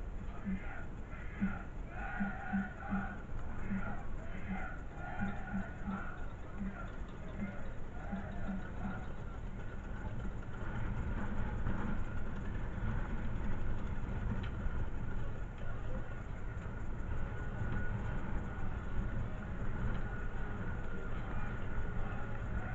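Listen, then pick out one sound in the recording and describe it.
A corner flag flutters and flaps in the wind.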